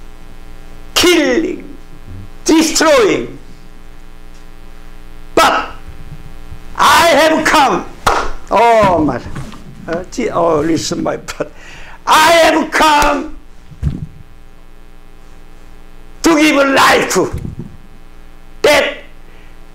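An elderly man speaks passionately through a microphone, in bursts with pauses.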